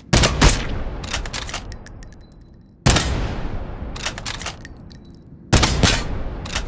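A rifle fires loud shots that echo and slowly fade.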